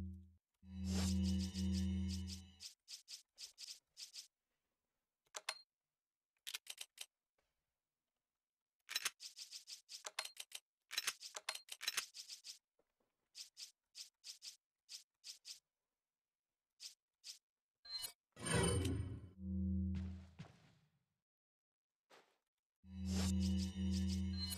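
A low humming menu tone sounds briefly, then comes again.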